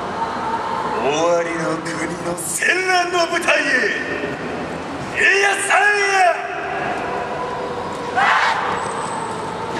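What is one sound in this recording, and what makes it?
A large group of young dancers shouts out loud chants in unison, outdoors.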